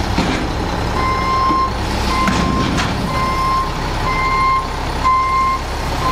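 A truck's backup alarm beeps repeatedly.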